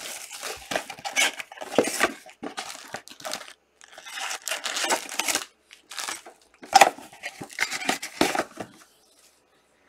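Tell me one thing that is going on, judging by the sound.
Cardboard packs rustle and slap as hands shuffle them.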